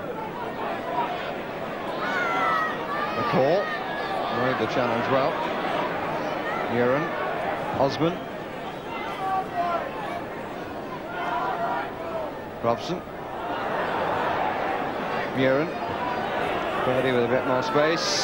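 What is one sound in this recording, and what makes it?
A large stadium crowd murmurs and shouts steadily.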